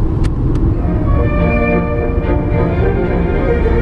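Music plays from a car stereo.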